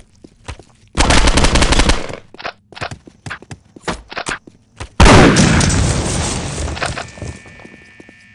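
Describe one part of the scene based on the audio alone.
Gunfire rattles in loud bursts inside an echoing hall.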